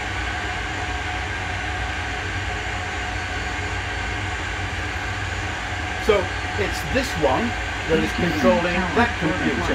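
A steady engine hum and rushing air fill a cockpit.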